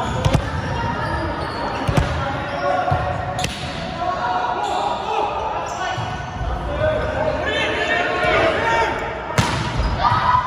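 A volleyball is struck with a hand, echoing in a large gym.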